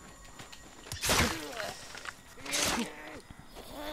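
Heavy blows thud in a fight.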